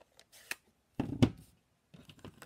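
A plastic case is set down on a table with a knock.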